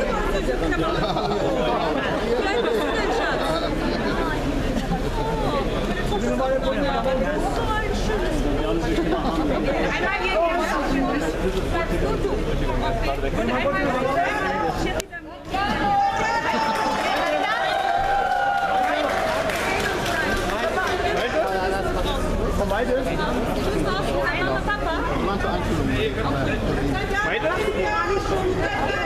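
A crowd chatters loudly all around, close by.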